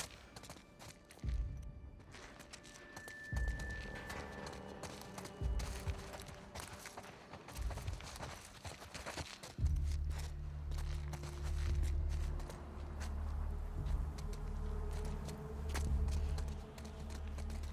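Footsteps scuff softly on a hard floor.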